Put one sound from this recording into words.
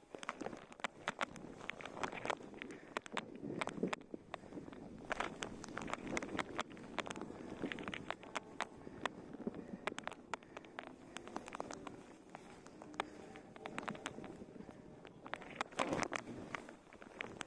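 Skis scrape and hiss over packed snow.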